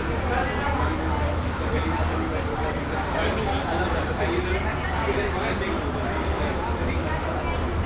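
A man talks quietly close by.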